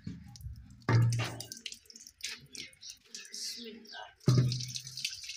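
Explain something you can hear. A clay pot thumps against a hard floor.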